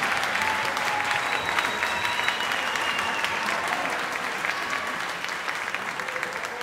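A crowd applauds with loud, steady clapping that slowly fades a little.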